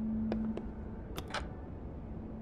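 A button clicks on a cassette player.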